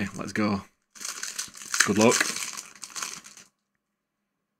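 Foil card packs crinkle and rustle in hands.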